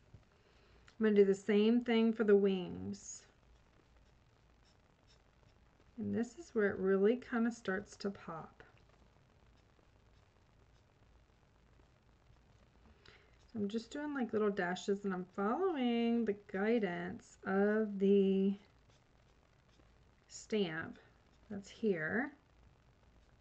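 A woman talks calmly into a close microphone, pausing often.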